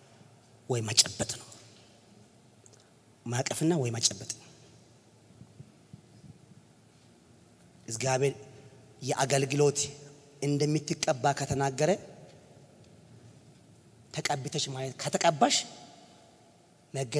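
A man preaches forcefully through a microphone in a large echoing hall, in short bursts with pauses.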